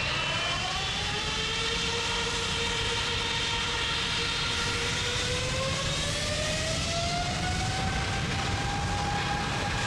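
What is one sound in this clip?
A jet engine roars with a high whine that slowly rises in pitch.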